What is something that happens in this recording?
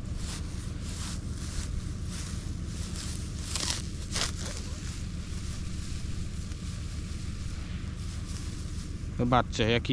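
Grass rustles and tears as it is pulled up by hand.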